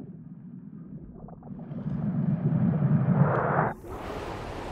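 A plastic ball rolls and rumbles across a hard floor.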